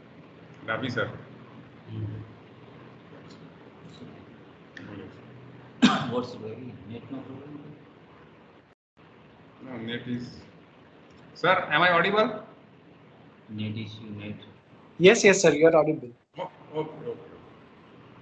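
A man speaks casually over an online call, with pauses.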